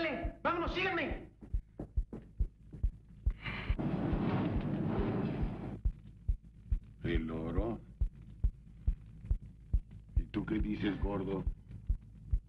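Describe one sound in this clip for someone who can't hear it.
A man talks.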